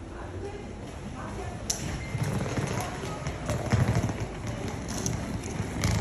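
Suitcase wheels rumble over paving stones.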